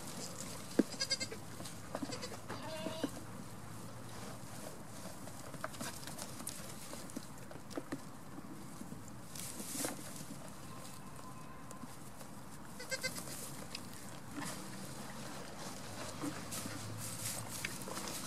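Small hooves patter and rustle on dry straw.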